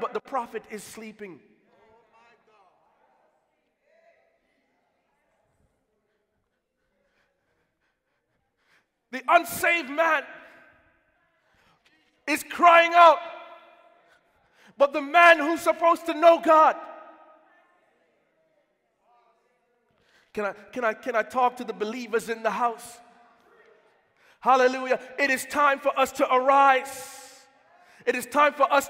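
A man preaches with passion into a microphone, in bursts with pauses, echoing in a large hall.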